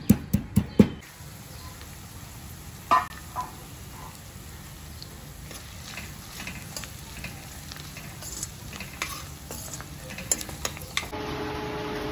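Onions sizzle softly in hot oil.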